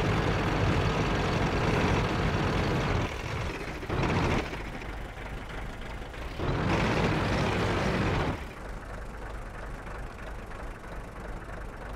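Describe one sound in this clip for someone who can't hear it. A tank engine rumbles and roars, rising and falling.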